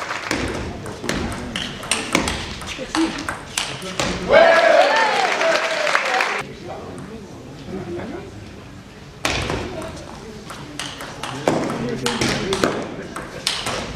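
A table tennis ball clicks back and forth between paddles and table in a large echoing hall.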